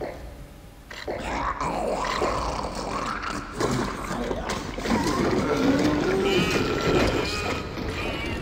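A monster shrieks and snarls.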